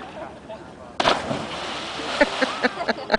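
A person splashes loudly into water after a jump.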